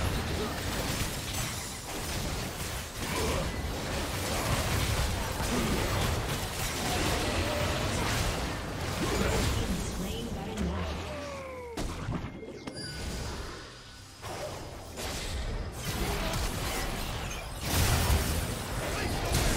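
Game spell effects crackle and blast in a fight.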